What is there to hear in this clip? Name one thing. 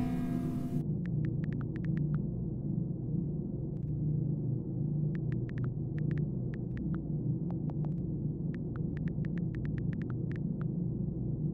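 Keyboard keys click softly in quick bursts of typing.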